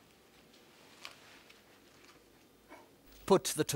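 Hands press lettuce softly onto a slice of bread.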